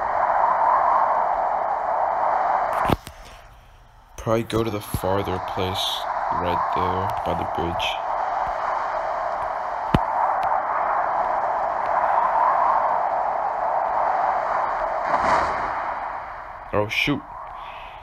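Wind rushes past a skydiver in freefall.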